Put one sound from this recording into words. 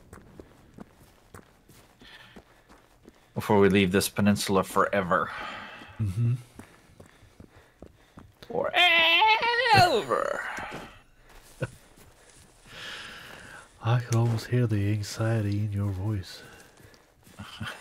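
Footsteps tread steadily on dirt and brush.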